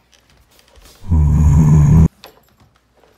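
A vacuum cleaner roars loudly close by and then cuts off abruptly.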